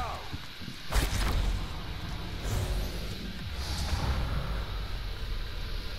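A deep, rushing whoosh rumbles and swirls.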